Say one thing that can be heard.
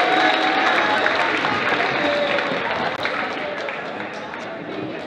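A crowd cheers and claps in a large echoing gym.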